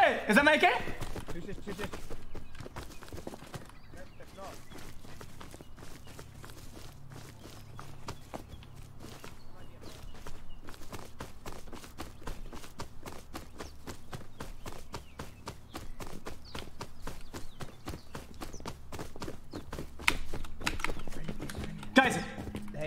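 Footsteps crunch quickly over dry ground.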